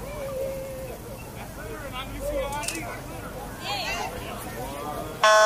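A crowd of adults and children chatters and calls out outdoors.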